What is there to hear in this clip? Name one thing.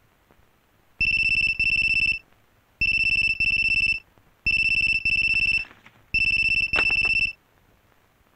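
A telephone rings in loud repeated bursts.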